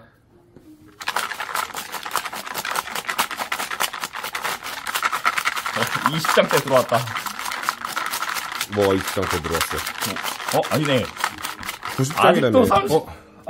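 Paper packets rustle and rattle in a plastic basket being shaken.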